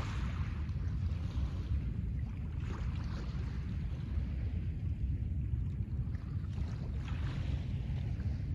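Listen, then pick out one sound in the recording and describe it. Wind rumbles across the microphone outdoors.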